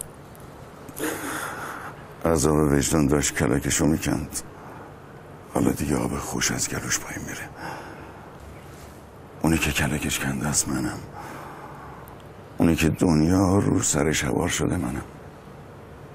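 A middle-aged man speaks with animation in short bursts, close by.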